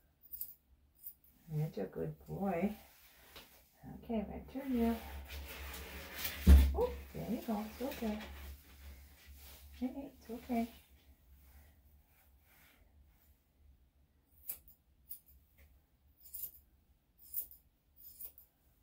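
Scissors snip through a dog's fur.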